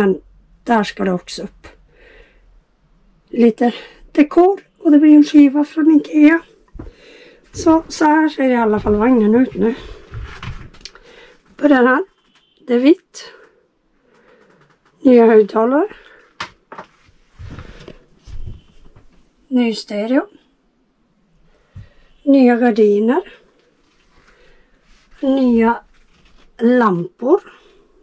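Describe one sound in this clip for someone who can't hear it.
A woman speaks calmly and close by, pausing often.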